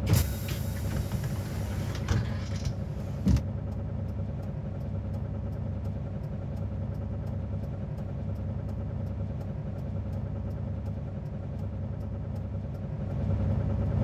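A bus engine idles with a low steady rumble.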